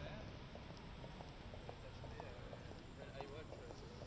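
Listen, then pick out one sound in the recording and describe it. Footsteps tap on stone pavement outdoors.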